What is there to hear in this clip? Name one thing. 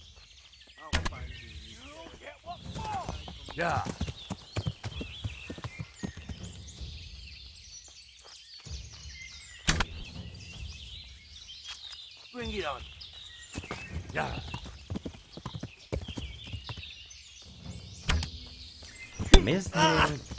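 An arrow is loosed from a bow with a sharp snap.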